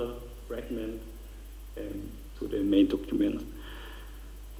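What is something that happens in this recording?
A man speaks into a microphone in a large hall, pausing often.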